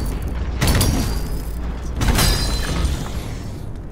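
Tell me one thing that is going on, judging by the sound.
Heavy blows strike with loud crashing impacts.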